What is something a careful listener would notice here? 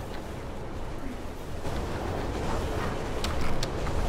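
A train rumbles past nearby.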